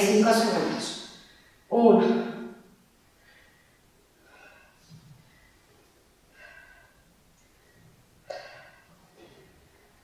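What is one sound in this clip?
A woman speaks with energy into a microphone, then talks quietly between breaths.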